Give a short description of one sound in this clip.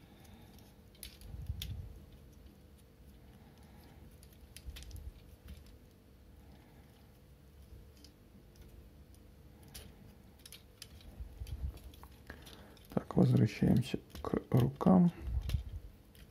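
Plastic toy parts click and snap as they are twisted into place.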